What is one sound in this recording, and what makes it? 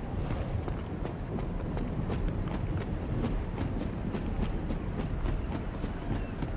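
Armoured footsteps run over the ground.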